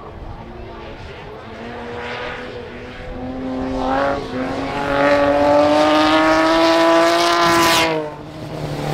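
A rally car engine revs loudly as it approaches and passes close by.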